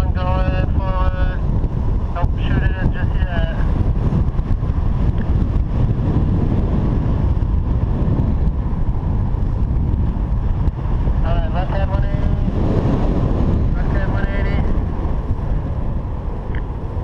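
Wind rushes loudly and steadily past outdoors.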